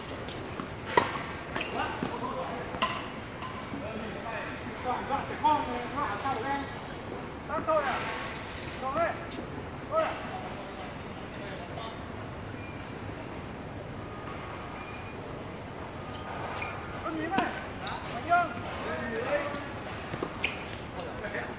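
A tennis racket strikes a tennis ball outdoors.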